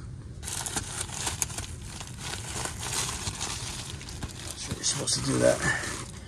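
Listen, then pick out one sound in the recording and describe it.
Foil-wrapped insulation crinkles and rustles under a hand.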